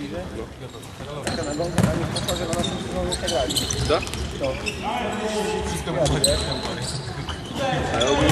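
Several young men shout and call out across a large echoing hall.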